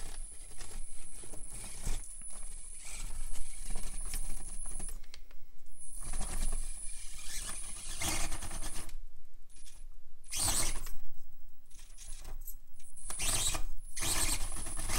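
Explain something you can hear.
A small electric motor whines in bursts as a toy truck crawls.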